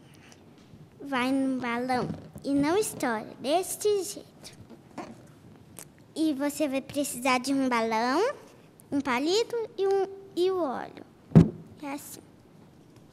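A young girl speaks with animation into a headset microphone.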